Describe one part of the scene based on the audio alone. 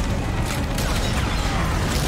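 A loud explosion roars and rumbles.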